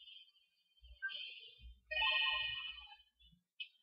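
A handheld game console plays short electronic chimes.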